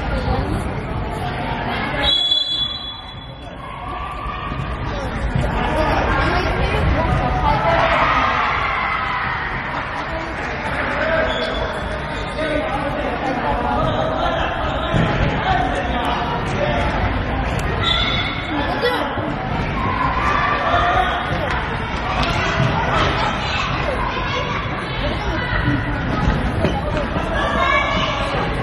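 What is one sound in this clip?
A futsal ball is kicked and thuds in a large echoing hall.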